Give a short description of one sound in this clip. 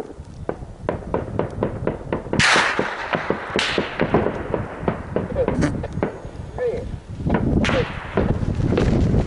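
Gunshots crack rapidly and repeatedly outdoors, echoing off the hills.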